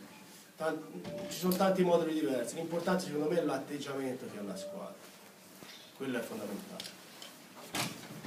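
A man speaks calmly into a microphone, in a room with some echo.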